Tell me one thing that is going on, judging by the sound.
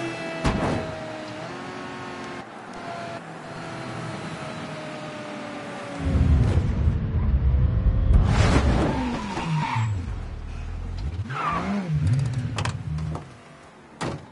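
A car engine roars as the car drives along.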